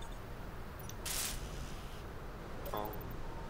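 A power tool whirs briefly.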